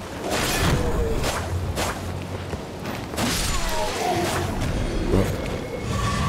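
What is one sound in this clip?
Swords clash and strike in quick blows.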